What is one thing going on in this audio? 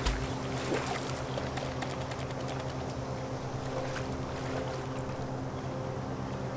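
Water splashes as bears wade and play in a shallow pool.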